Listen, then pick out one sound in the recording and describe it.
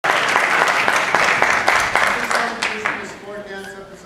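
An audience applauds in a large hall, and the applause fades away.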